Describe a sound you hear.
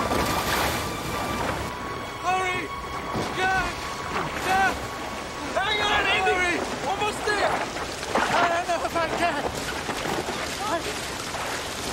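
Rushing river water churns and splashes.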